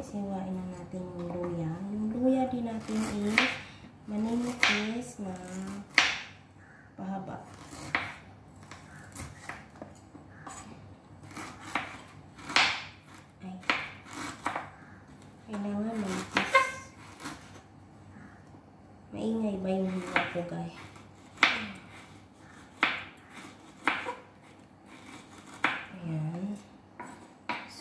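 A knife chops onion on a wooden board with sharp knocks.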